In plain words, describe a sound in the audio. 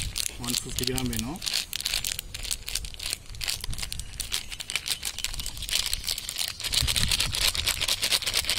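Fine powder pours from a packet and patters onto a metal plate.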